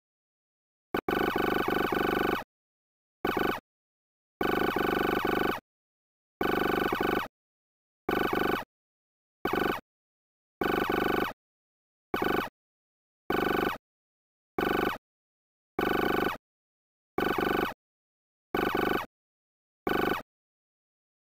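Electronic chattering bleeps come in short bursts as text prints out.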